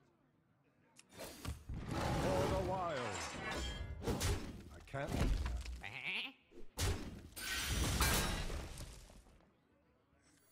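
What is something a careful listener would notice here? Card game effects whoosh, crash and chime in bursts.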